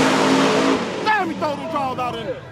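Race car engines whine and fade into the distance.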